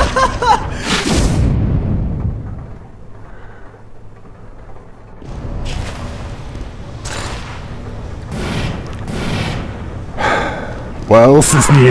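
A flamethrower roars in short bursts.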